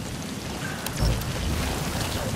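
Footsteps walk over dry ground.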